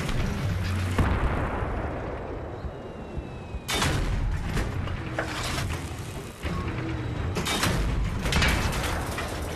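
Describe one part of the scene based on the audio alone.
Heavy blasts boom and crack nearby.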